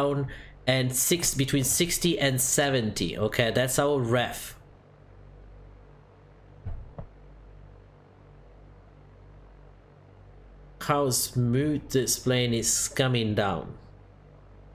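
A young man talks calmly and close into a microphone.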